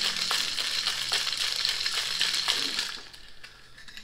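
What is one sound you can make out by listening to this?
Liquid pours and splashes into a metal cup.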